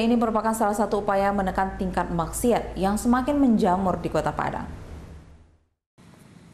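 A woman speaks clearly and steadily into a microphone, like a news presenter.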